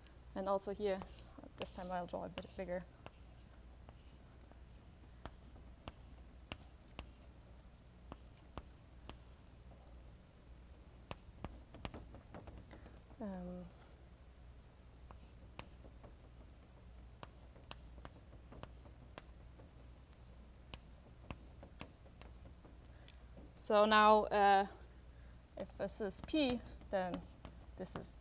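A woman speaks calmly, with long pauses.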